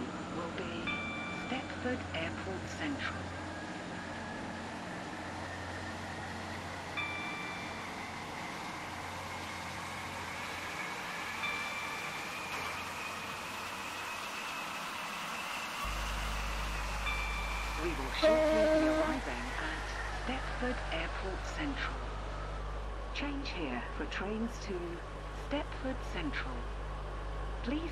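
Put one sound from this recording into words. A train rumbles along the track with a low steady drone.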